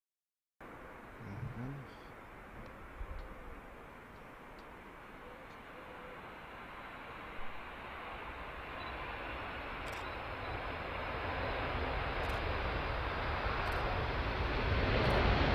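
A large jet aircraft's engines roar steadily and grow louder as it taxis closer.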